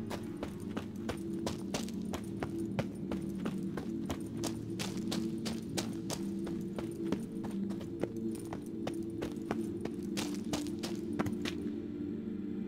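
Footsteps crunch quickly and steadily on dry ground.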